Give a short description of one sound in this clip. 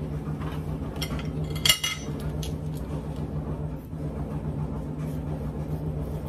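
A knife cuts through a bell pepper with crisp snaps.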